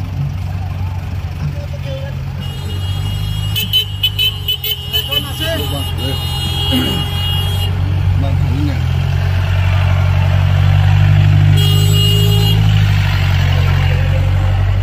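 Engines rumble low and steady as vehicles idle and move slowly.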